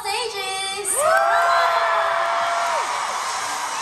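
A young woman sings a short melody into a microphone through loudspeakers.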